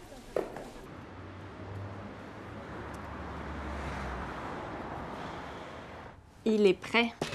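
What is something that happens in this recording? Street traffic hums outdoors.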